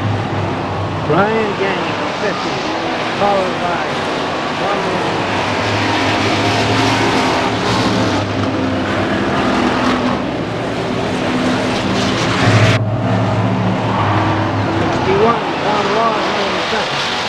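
Tyres squeal as cars slide through a turn.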